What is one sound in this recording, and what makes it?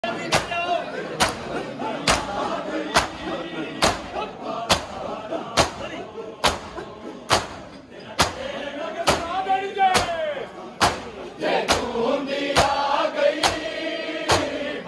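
A large crowd of men beat their chests in loud, rhythmic slaps.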